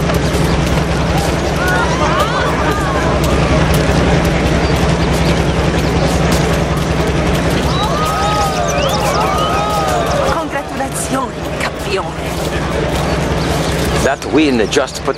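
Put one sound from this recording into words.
A crowd of people chatters and calls out nearby.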